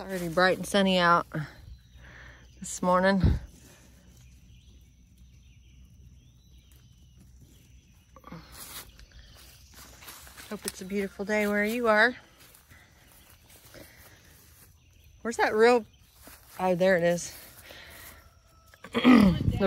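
Leaves and stems rustle softly as a hand handles a tomato plant.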